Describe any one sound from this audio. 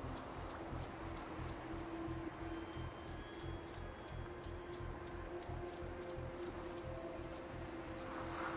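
Footsteps crunch over stones and gravel.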